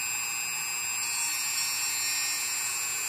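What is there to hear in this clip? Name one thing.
A rotary tool grinds against metal.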